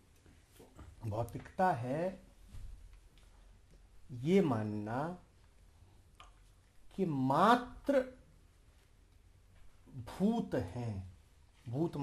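A man speaks calmly and slowly, in short phrases with pauses.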